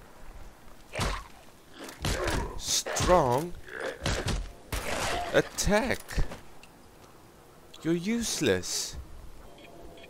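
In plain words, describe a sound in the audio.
Rifle shots ring out one after another.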